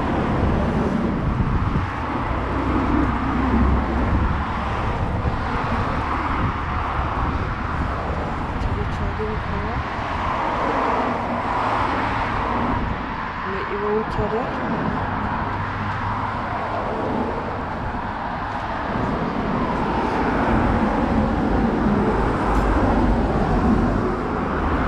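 Cars pass on a road.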